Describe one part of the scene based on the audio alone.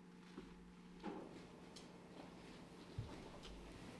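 An elderly man speaks briefly into a microphone.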